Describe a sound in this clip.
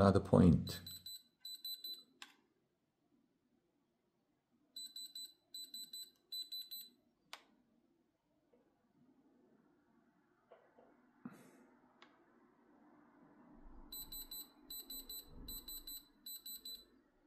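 An electronic tester beeps in short rapid bursts.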